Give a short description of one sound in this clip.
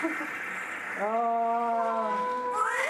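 A newborn baby cries.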